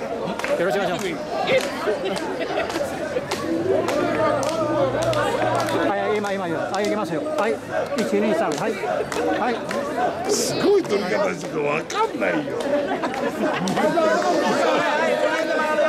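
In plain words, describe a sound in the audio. A crowd of men and women chatter and shout close by, outdoors.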